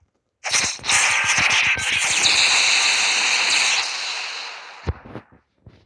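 A crackling magical energy blast roars and hisses.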